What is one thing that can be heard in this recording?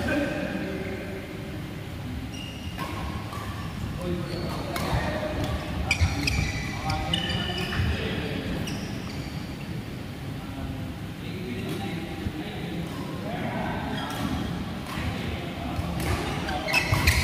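Young men call out to each other across a large echoing hall.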